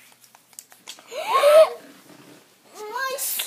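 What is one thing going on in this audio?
A young girl laughs loudly.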